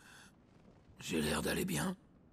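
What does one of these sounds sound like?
A man answers wryly, close by.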